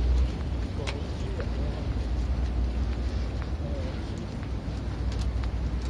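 Footsteps tap on paving close by.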